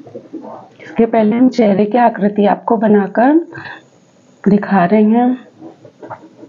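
A woman speaks clearly and calmly close by.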